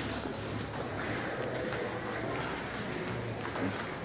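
Footsteps climb stairs.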